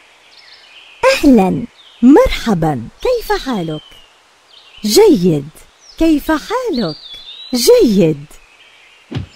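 A young man speaks with animation, close by, in short bursts.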